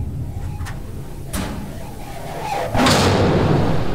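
A metal locker door bangs shut.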